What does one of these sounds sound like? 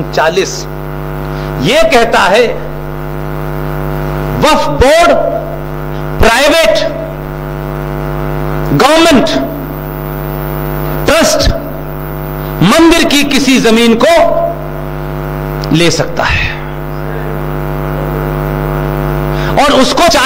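An older man speaks slowly and deliberately through a microphone, in short bursts with long pauses.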